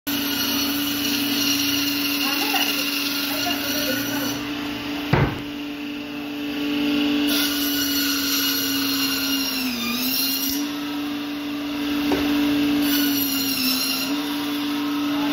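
A band saw hums steadily as it runs.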